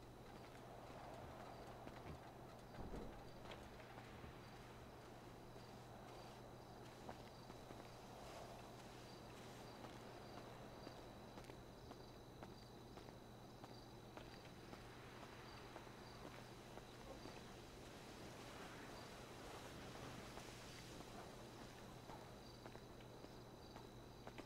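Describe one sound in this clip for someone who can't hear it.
Footsteps crunch on gravel and rocky ground.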